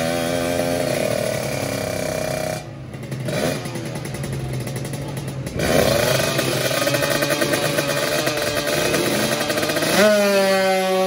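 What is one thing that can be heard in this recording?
A motorcycle engine idles and revs loudly close by.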